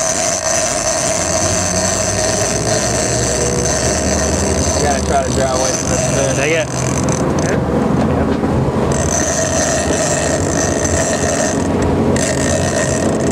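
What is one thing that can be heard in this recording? A boat engine rumbles low and grows louder.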